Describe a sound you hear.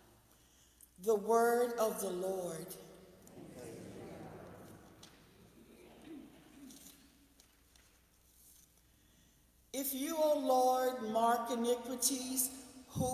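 A woman sings into a microphone in an echoing hall.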